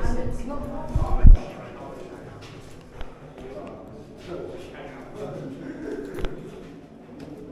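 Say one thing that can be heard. Footsteps echo as someone walks through a narrow corridor.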